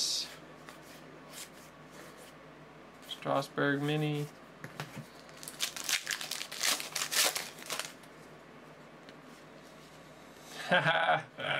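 Stiff cards rustle and slide as they are flipped through.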